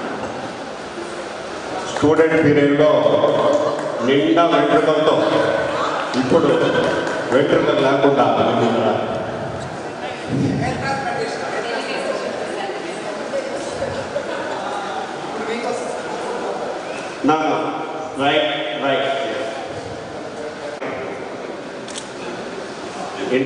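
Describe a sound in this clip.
A middle-aged man speaks with animation into a microphone over loudspeakers in an echoing hall.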